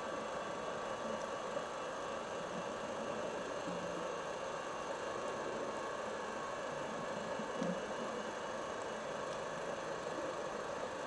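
A diver breathes through a regulator with a hiss.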